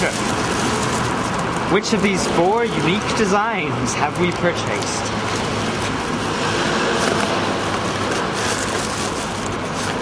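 Street noise hums steadily outdoors.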